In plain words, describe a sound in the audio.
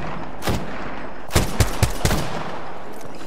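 Rapid gunshots fire in short bursts.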